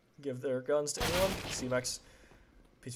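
Gunfire rings out in a short burst.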